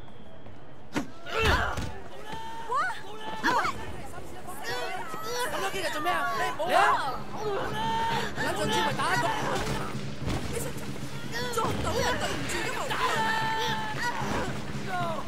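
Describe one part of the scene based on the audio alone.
Punches land with heavy thuds in a scuffle.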